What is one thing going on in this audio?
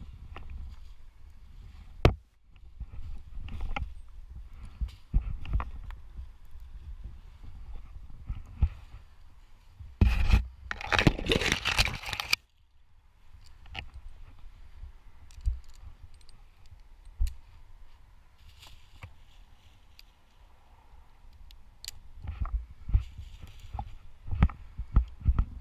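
Twigs snap and crack close by as a climber moves among tree branches.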